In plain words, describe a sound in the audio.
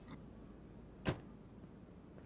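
A car hood slams shut with a thud.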